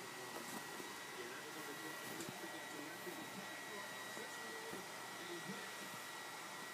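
A cat rustles softly against bedding close by.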